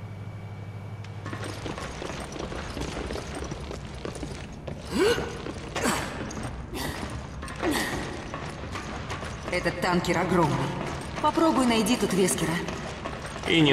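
Heavy footsteps clang on a metal floor.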